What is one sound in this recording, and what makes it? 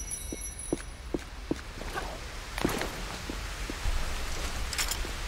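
Waterfalls splash and rush steadily nearby.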